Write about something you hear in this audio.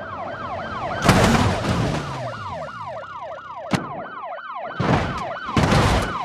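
A car crashes hard into a barrier with a loud bang.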